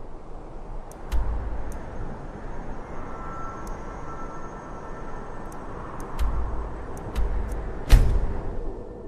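Menu clicks tick now and then.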